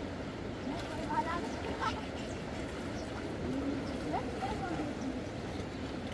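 Young boys call out over the water.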